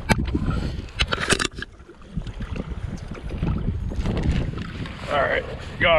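Knocks and clicks sound close by as a fishing reel and rod are handled.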